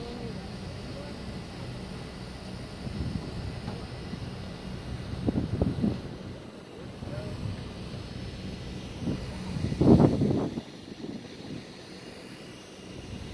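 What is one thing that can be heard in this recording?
Wind blows across the open deck.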